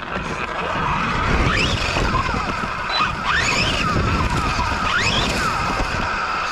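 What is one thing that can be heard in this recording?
An electric motor on a radio-controlled truck whines as it accelerates.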